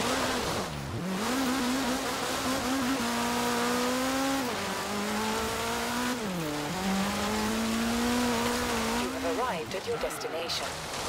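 A rally car engine revs and roars as it drives over rough dirt.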